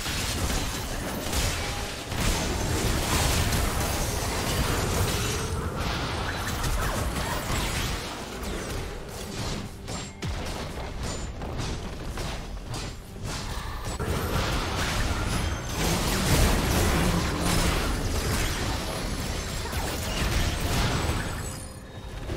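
Fantasy battle sound effects of spells and clashing weapons crackle and boom.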